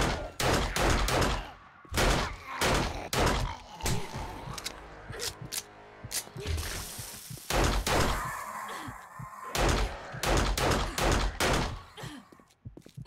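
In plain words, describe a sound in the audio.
Gunshots fire in loud bursts.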